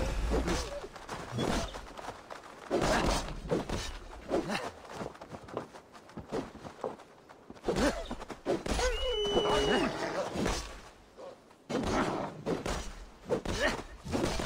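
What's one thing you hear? Blades strike flesh with heavy thuds.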